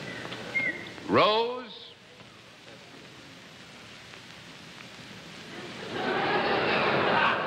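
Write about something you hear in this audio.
Chalk scratches across a board.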